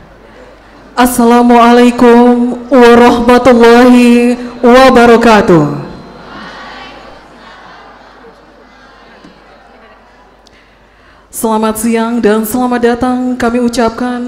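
A woman sings through a microphone and loudspeakers, with long held notes.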